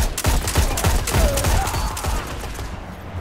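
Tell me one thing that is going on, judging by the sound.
A sniper rifle fires with sharp, booming shots.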